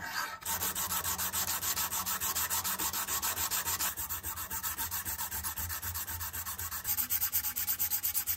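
A sanding block rasps rapidly back and forth over metal.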